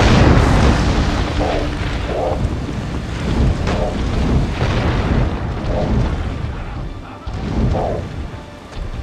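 Fiery explosions burst and crackle.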